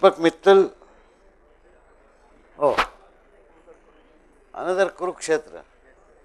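A man announces through a microphone in short bursts, in an echoing hall.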